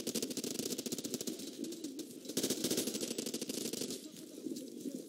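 Rapid gunfire crackles in quick bursts.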